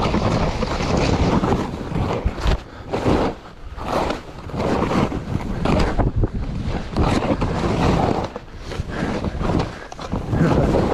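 Wind roars loudly over the microphone outdoors.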